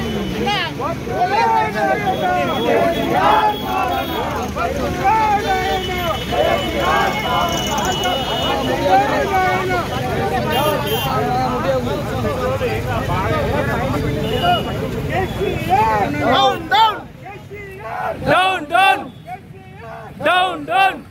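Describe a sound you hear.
A crowd of men shout and chant slogans loudly outdoors.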